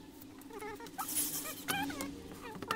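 A cordless screwdriver whirs briefly.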